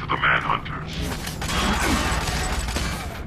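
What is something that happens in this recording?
An energy blast crackles and roars.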